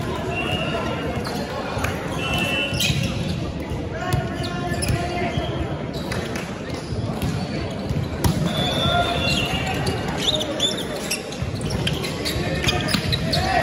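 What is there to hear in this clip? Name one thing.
Players call out to each other in a large echoing hall.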